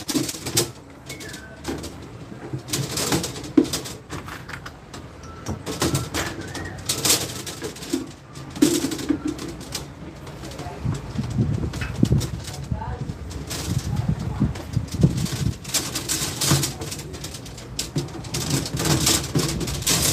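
Coiled copper tubing clinks and rattles as it is handled.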